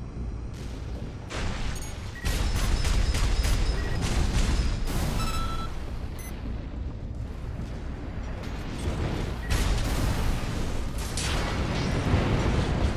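Rocket thrusters roar steadily.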